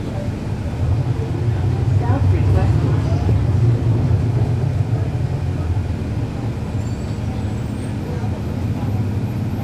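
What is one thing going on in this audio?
A second bus engine rumbles louder nearby.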